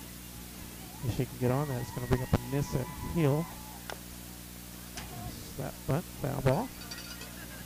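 Young women shout and cheer across an open field.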